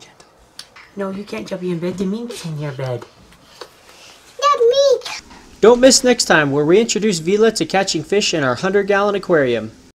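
A child talks excitedly nearby.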